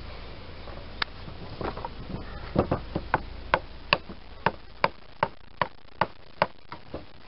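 A hatchet chops repeatedly at a piece of wood.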